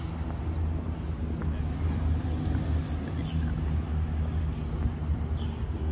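A car engine hums as the car rolls slowly by.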